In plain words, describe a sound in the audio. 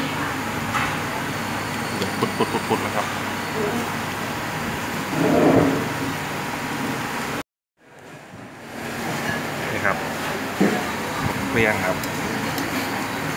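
Soup simmers and bubbles in a pot.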